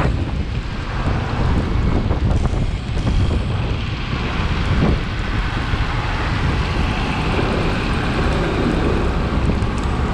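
Wind rumbles hard against a microphone on a moving vehicle.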